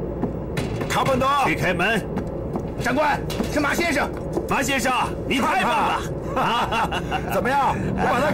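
A man speaks excitedly up close.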